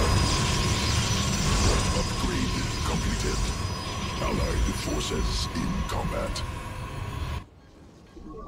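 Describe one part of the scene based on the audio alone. Energy portals hum and crackle as units warp in.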